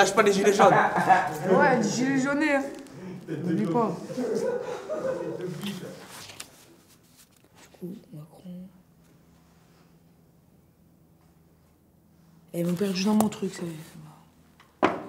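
A boy talks calmly and close by.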